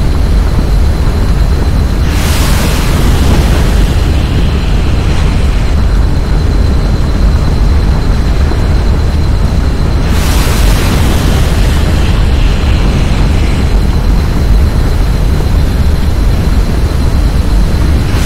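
Flames roar and crackle loudly.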